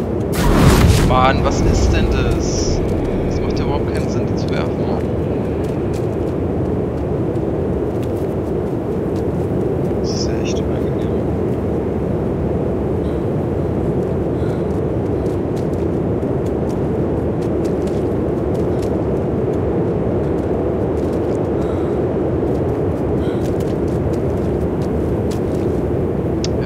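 Footsteps swish through long grass.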